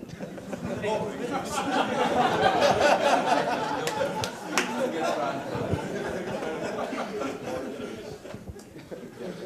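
A crowd chatters in a large room.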